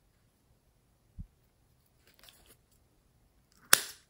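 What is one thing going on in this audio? A plastic packet crinkles in fingers.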